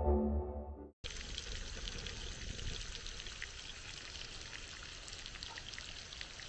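Meat sizzles and crackles loudly in a hot pan.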